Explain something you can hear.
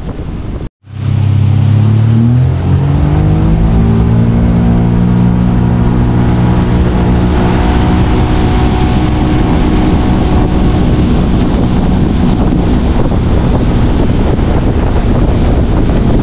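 A boat engine roars loudly and climbs in pitch as it speeds up.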